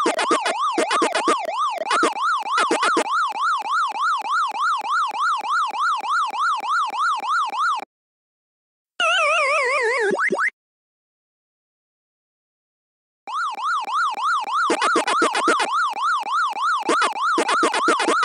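Electronic game sounds warble rapidly up and down.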